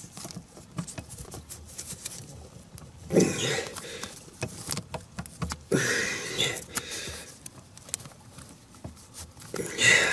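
Plastic connectors click and rattle as hands plug cables together.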